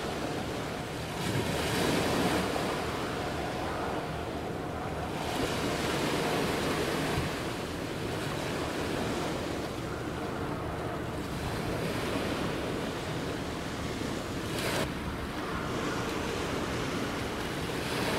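A large ship's engine rumbles steadily nearby.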